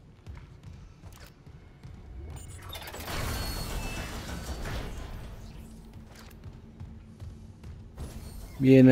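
Heavy metal footsteps clank on a hard floor.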